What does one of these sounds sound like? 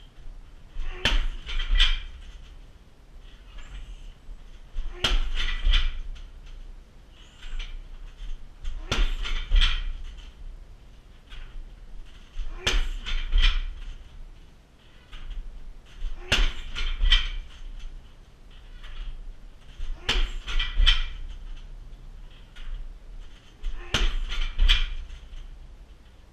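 Fists and feet thud hard against a heavy punching bag in quick bursts.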